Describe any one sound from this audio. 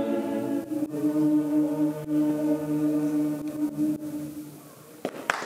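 A mixed choir sings together in a large hall.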